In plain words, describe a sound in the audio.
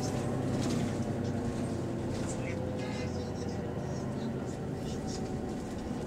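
Passengers chatter in a crowded, echoing bus.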